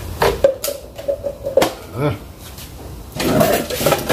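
A plastic bottle clatters as it is set down on hard ground.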